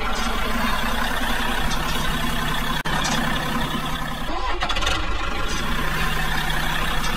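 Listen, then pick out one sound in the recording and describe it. A small electric toy motor whirs steadily.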